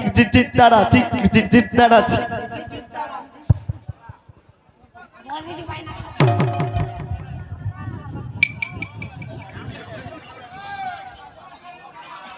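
A young woman sings through a loudspeaker.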